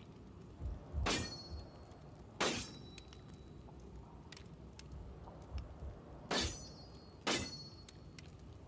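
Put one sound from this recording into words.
Short chiming interface clicks sound as game menu items are selected.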